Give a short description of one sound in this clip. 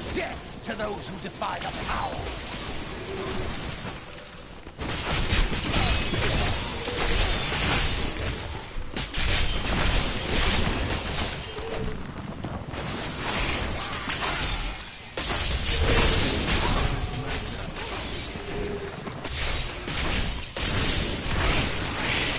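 Crackling electric zaps of a video game's lightning spell blare.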